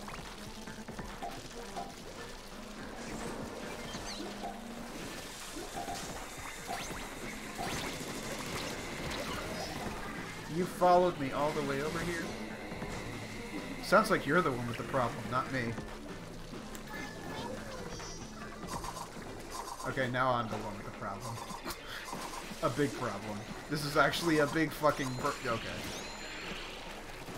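Cartoonish splattering and squirting sounds play steadily.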